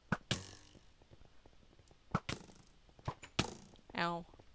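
A bow twangs sharply as arrows are shot, several times.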